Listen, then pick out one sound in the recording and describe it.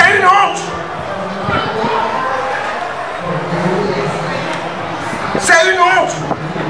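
A man speaks forcefully into a microphone, heard over a loudspeaker in an echoing space.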